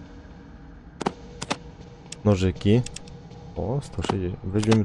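Short interface clicks sound.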